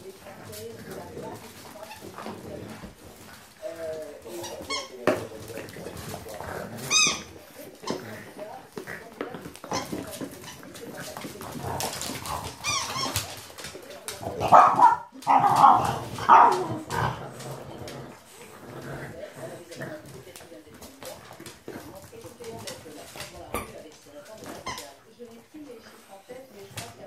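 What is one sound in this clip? French bulldog puppies growl and grunt while tugging at a toy.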